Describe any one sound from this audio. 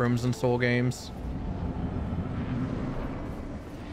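A deep magical whoosh sounds.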